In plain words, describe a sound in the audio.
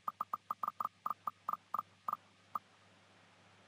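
A prize wheel ticks rapidly as it spins, slowing down.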